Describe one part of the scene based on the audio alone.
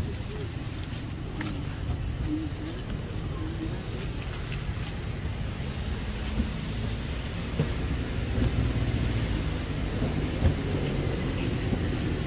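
Leaves and twigs rustle as a monkey climbs on a branch.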